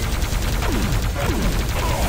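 Guns fire in rapid bursts with sharp electric zaps.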